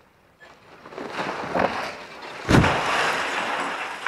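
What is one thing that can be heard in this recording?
A concrete bell tower topples and crashes to the ground with a heavy rumbling impact.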